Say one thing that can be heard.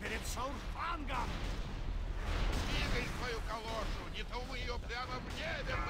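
Fiery magic blasts burst and crackle.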